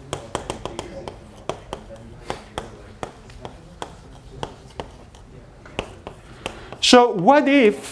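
Chalk taps and scrapes on a blackboard in quick strokes.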